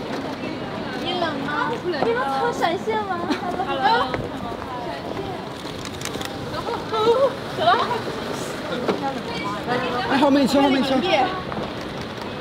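Several young women and men talk and call out nearby outdoors.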